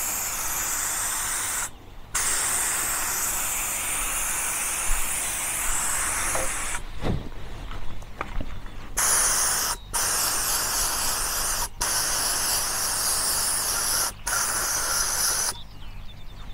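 A compressed-air spray gun hisses as it sprays.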